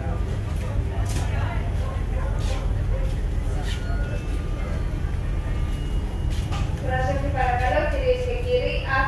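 A ship's engine hums low and steady.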